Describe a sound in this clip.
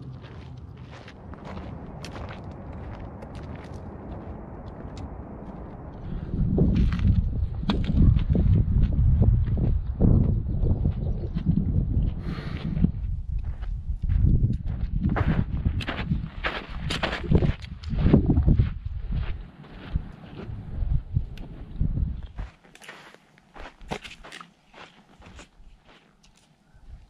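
Footsteps crunch on a gravel trail.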